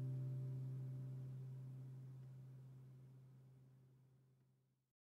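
An acoustic guitar note rings out and slowly fades away.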